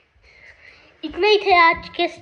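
A young boy talks cheerfully, close by.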